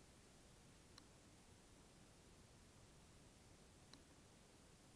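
Pliers click as they snip a thin wire.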